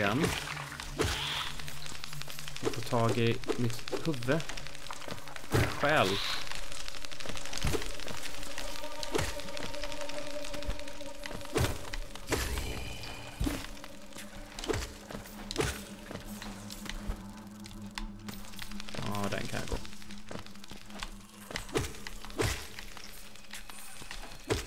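Sharp game sound effects hit and slash.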